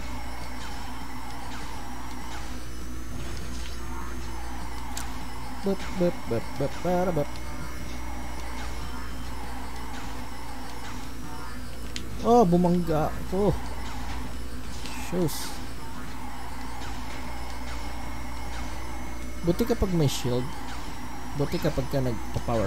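Kart engines whine steadily.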